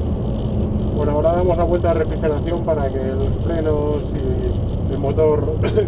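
A man speaks with animation close by over the engine.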